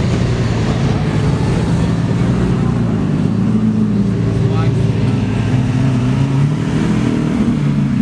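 A second sports car engine growls deeply as it drives up and passes close by.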